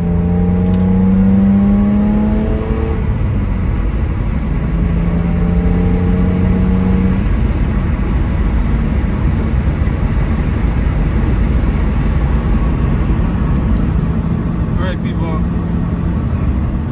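Tyres roll and rumble on the road.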